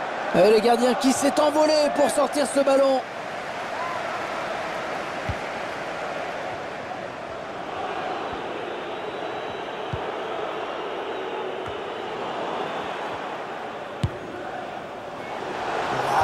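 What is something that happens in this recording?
A large stadium crowd murmurs and chants steadily.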